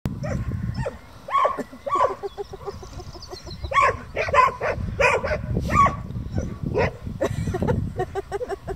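Sheep bleat repeatedly nearby.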